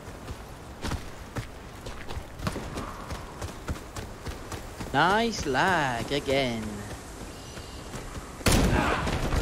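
Footsteps run over hard ground.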